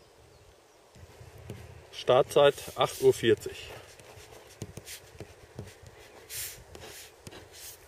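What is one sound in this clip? A pen scratches on paper close by.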